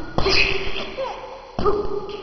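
A baby laughs and squeals.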